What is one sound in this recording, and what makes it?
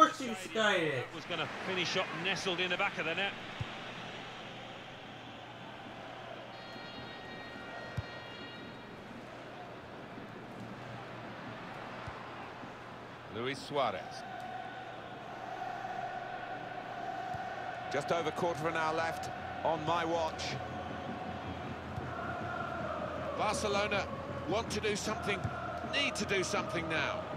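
A large crowd murmurs and cheers steadily in a stadium.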